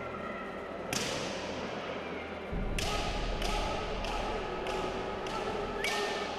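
Bamboo swords clack sharply against each other in an echoing hall.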